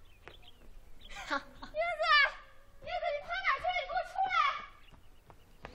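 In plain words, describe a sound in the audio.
A young man laughs and shouts playfully.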